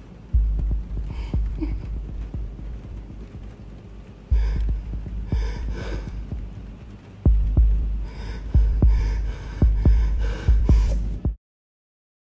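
A man sobs and whimpers close by.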